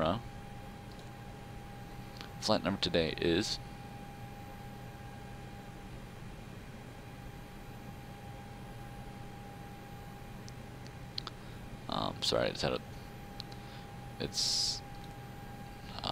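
A steady electronic hum drones throughout.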